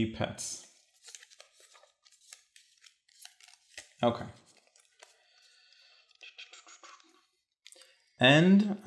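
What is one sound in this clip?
Game pieces and cards click and rustle on a table.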